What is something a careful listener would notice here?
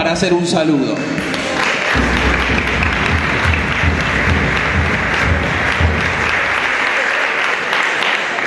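People clap and cheer in a large hall.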